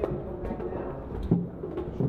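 Footsteps climb stairs nearby.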